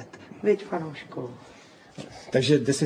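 A middle-aged woman laughs softly nearby.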